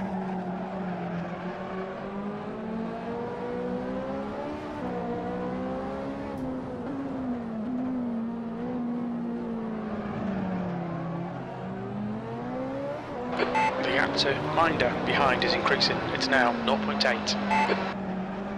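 A racing car engine roars, its pitch rising and falling with gear changes.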